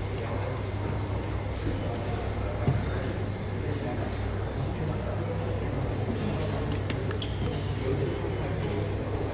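A crowd murmurs in the background of a large room.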